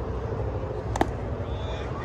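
A bat strikes a ball with a sharp crack.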